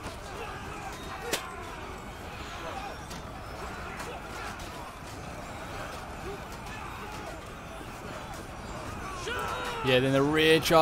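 Weapons clash and clang in battle.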